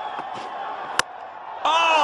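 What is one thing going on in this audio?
A bat strikes a cricket ball with a sharp crack.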